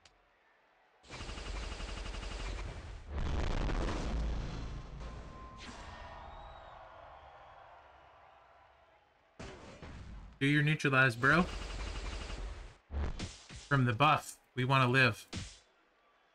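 Electronic game effects burst with loud whooshing blasts.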